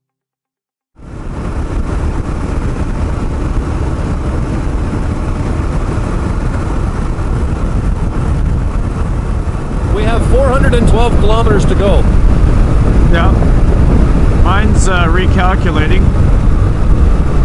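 Wind rushes and buffets loudly past a moving motorcycle.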